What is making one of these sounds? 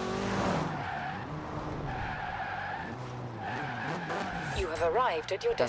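Car tyres screech while braking hard.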